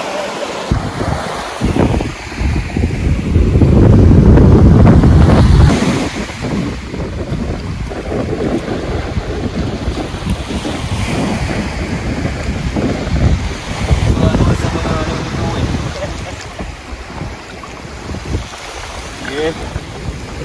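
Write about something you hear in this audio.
Wind gusts and rumbles across the open shore.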